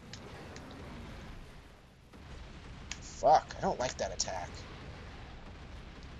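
Boulders crash and shatter.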